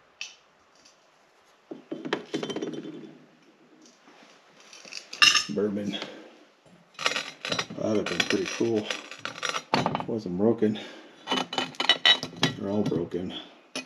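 A ceramic figurine scrapes and clinks on a wooden shelf.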